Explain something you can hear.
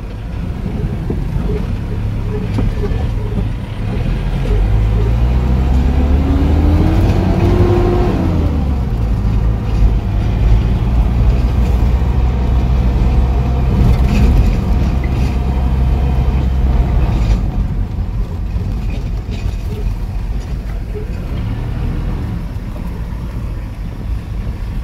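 A car engine rumbles steadily while driving, rising briefly in pitch.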